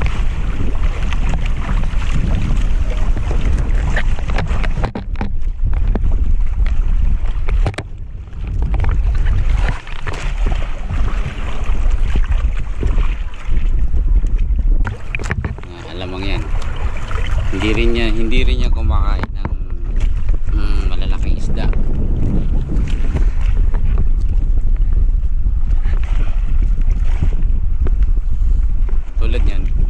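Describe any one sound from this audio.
Water splashes and laps against the side of a small boat.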